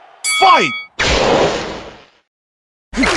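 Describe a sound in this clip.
A whooshing burst of a special move sweeps past.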